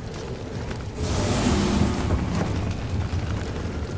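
A burst of magic whooshes and crackles.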